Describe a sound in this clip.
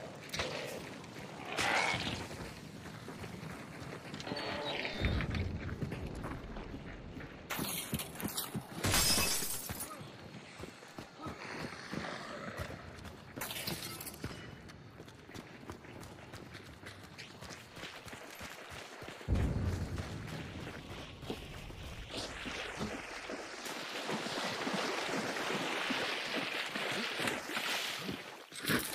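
Footsteps crunch on the ground.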